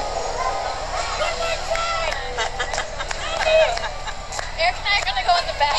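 A young woman shouts and laughs with excitement up close.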